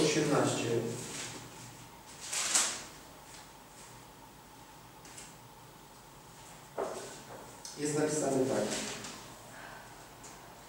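A man reads aloud calmly in a room with some echo.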